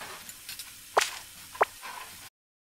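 A short bright chime rings twice.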